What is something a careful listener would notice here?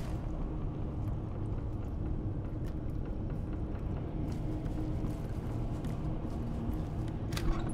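Footsteps thud softly on wooden floorboards.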